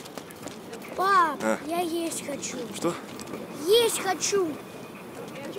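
A young boy speaks loudly and excitedly nearby.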